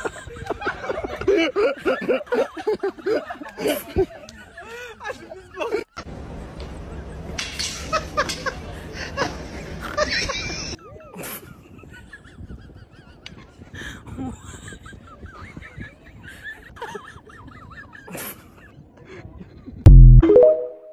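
Several people laugh and talk outdoors.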